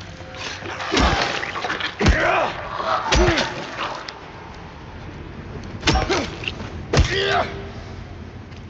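A creature screeches and groans.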